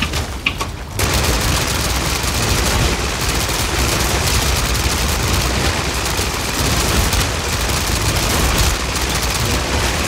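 Heavy explosions rumble and boom.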